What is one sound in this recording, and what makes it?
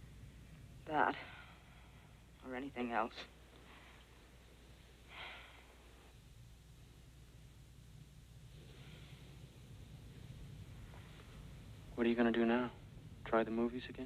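A man speaks in short, quiet phrases close by.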